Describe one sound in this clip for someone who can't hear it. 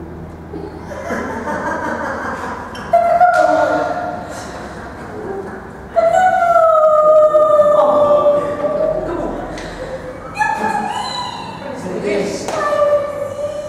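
A young woman sings loudly and with feeling in a room with some echo.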